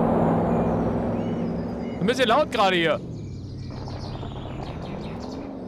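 A car engine hums steadily as the car drives over rough ground.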